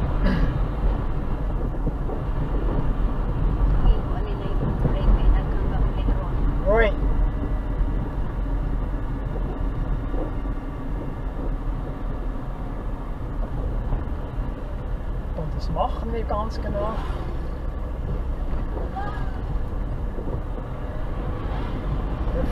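Tyres rumble over a rough road surface.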